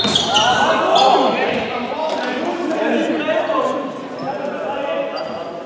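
A crowd of spectators talks and calls out nearby in a large echoing hall.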